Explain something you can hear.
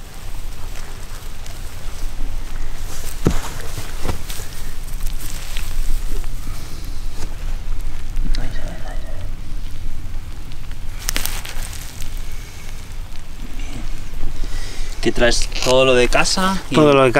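Hands rustle and crunch through dry straw and loose soil.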